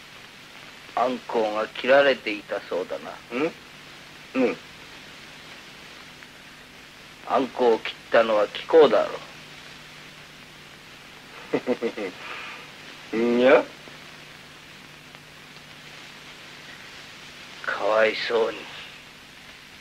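A man speaks in short, halting phrases, with long pauses between them.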